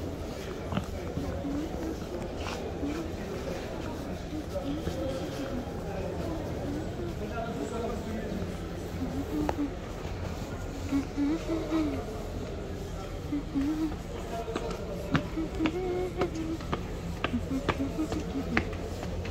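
Heeled shoes click on a hard floor and then up stone stairs in a large echoing hall.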